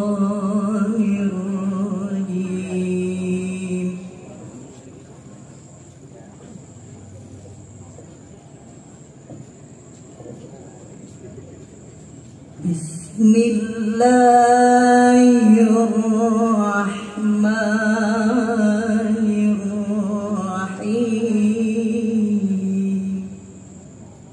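A young woman sings a long, drawn-out melody through a microphone in an echoing hall.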